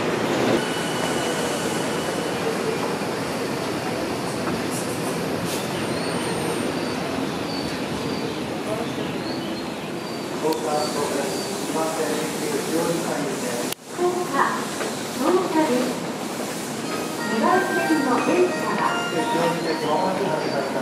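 A train rumbles steadily alongside a station platform.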